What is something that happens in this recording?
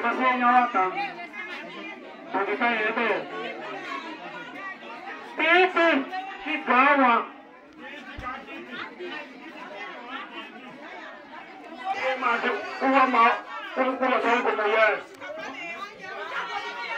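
A man calls out loudly and with animation through a megaphone.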